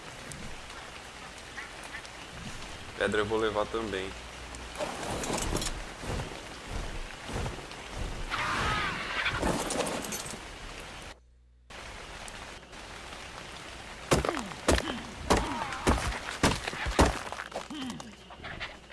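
Rain falls.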